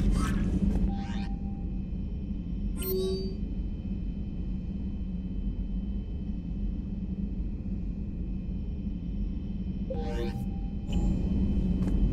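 Short electronic beeps and chimes sound now and then.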